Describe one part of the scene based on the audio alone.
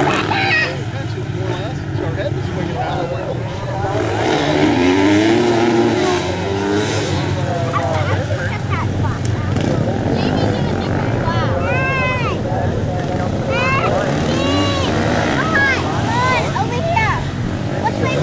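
Dirt bike engines rev and whine as the bikes race past.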